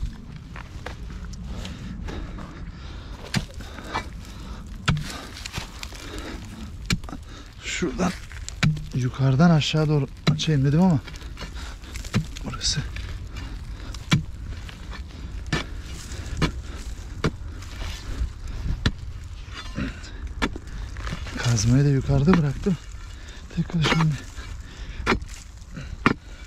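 A hand tool scrapes and strikes dry, stony soil.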